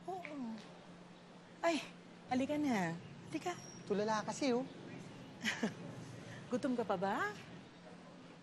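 A teenage boy speaks nearby.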